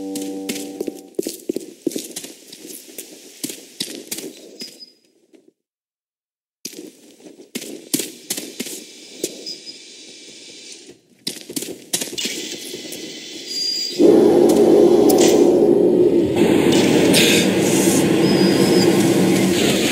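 Footsteps tread through grass at a steady walk.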